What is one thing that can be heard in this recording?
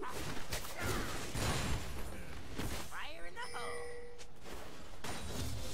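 Magic blasts and weapon hits crackle in a fight.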